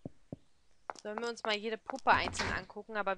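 A woman speaks close to a microphone, with animation.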